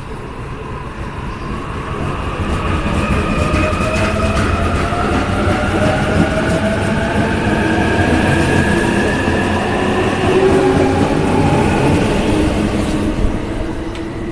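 An electric express train pulls away, its motors whining and rising in pitch.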